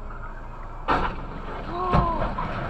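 A car crashes into a van with a loud bang.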